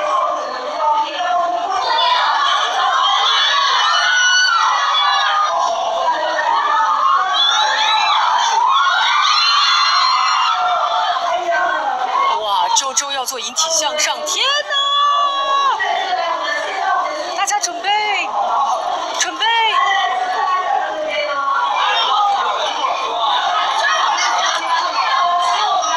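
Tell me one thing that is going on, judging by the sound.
A young woman speaks with animation into a microphone over loudspeakers.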